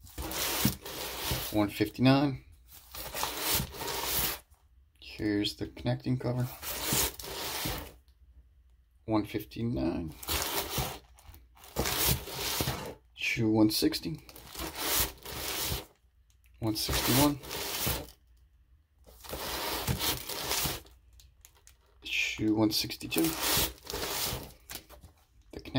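Plastic sleeves rustle and crinkle as comics are flipped through by hand.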